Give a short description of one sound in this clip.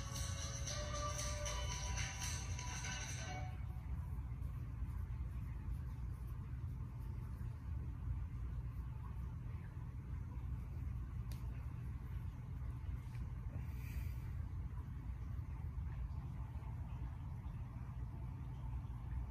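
A cat purrs steadily and deeply close by.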